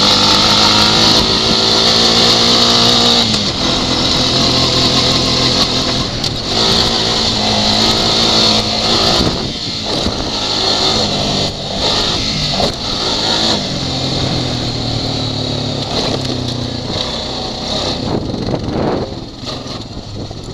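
An all-terrain vehicle engine roars close by, rising and falling as it revs.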